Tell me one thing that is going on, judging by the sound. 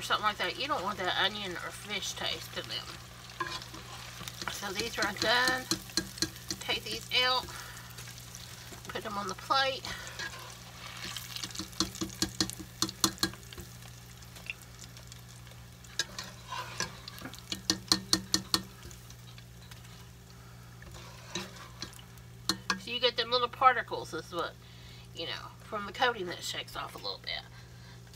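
A metal skimmer scrapes and clinks against a pot.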